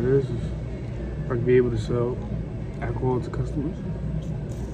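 A young man speaks softly and close up.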